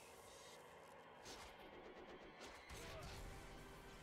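A sword stabs into a body with a heavy thud.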